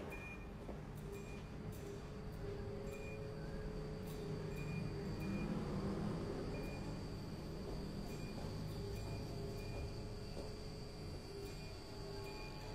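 Refrigerators hum steadily.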